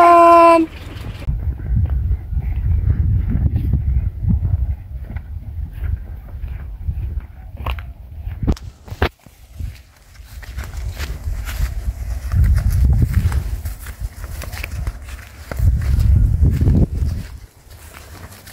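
Footsteps swish through long grass.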